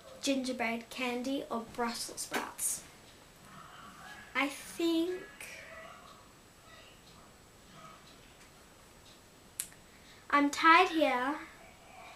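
A young girl talks with animation close by, pausing now and then.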